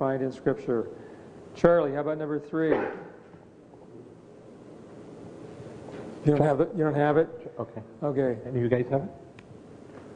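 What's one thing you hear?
An elderly man speaks with feeling through a microphone in an echoing hall.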